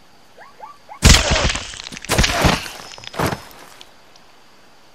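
A gun fires loud bursts that echo.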